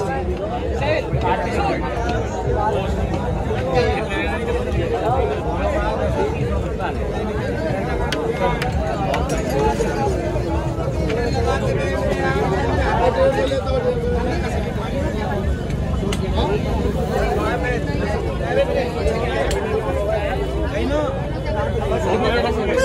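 Several young men talk with animation close by.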